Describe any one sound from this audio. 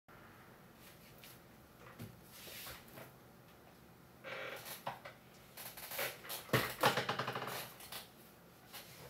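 A chair rattles and knocks as it is moved about close by.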